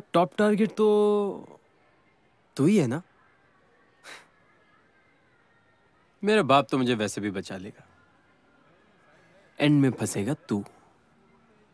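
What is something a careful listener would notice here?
A young man speaks softly and close by, in short phrases with pauses.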